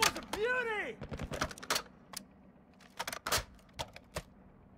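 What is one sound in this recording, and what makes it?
Metal parts of a rifle click and clatter as it is handled.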